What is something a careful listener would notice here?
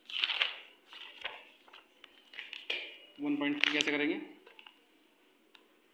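A notebook page is turned with a papery rustle.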